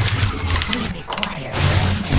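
Rapid blasts and crackles of a battle ring out.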